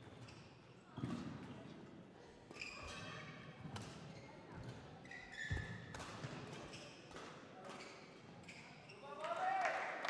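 Rackets strike a shuttlecock back and forth in a rally.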